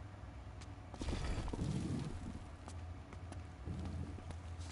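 A man talks casually into a microphone, close by.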